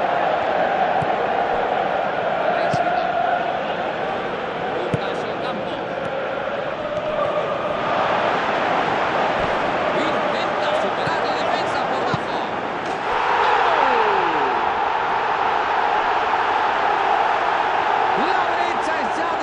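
A stadium crowd roars steadily, swelling louder after a goal.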